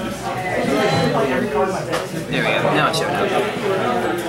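Playing cards shuffle and slap together.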